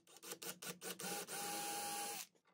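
A cordless drill whirs steadily, boring into wood.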